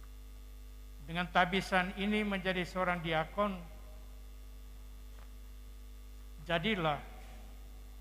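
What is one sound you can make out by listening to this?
An elderly man speaks slowly and calmly into a microphone, heard through loudspeakers.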